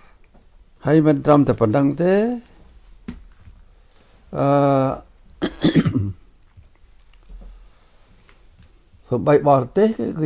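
An elderly man speaks calmly and slowly, close to a microphone, with pauses.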